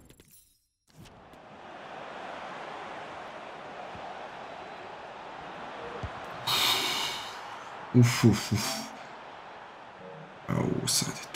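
A stadium crowd roars and cheers steadily.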